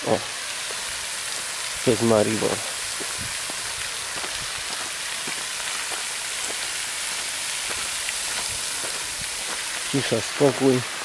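A fountain splashes steadily into water.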